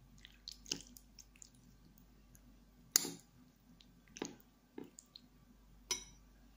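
A spoon stirs through soup with soft wet sounds.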